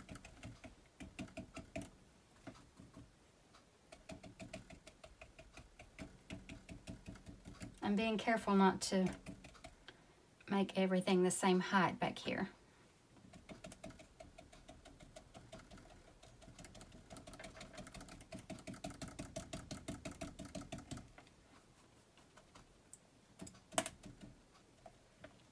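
A brush dabs and taps rapidly on paper.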